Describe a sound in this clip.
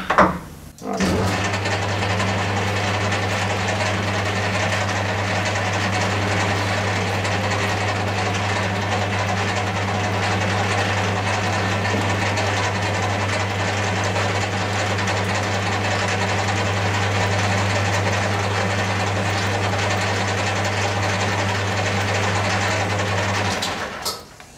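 A lathe motor hums steadily as the chuck spins.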